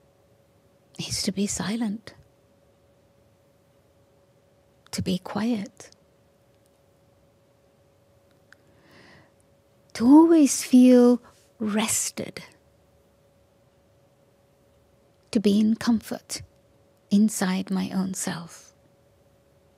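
An elderly woman speaks slowly and calmly into a microphone, with long pauses.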